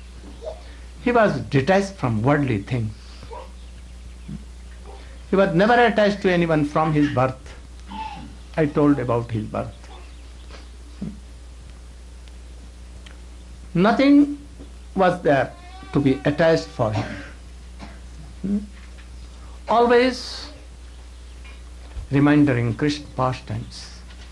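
An elderly man speaks calmly into a microphone, in bursts with pauses.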